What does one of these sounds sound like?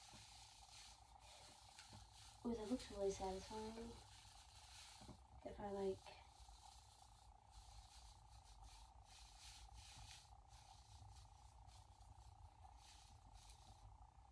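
Artificial tree branches rustle softly as they are handled.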